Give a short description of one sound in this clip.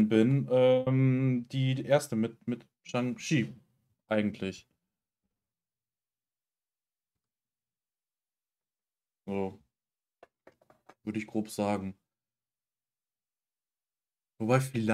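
A young man speaks calmly and closely into a microphone, with long pauses.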